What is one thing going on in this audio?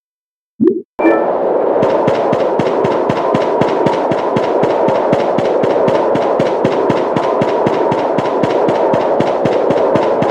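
Footsteps tread quickly on rocky ground.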